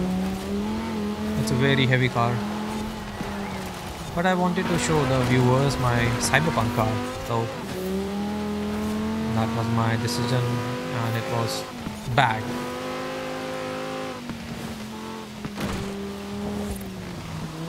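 A car engine roars steadily at high revs, rising and falling in pitch.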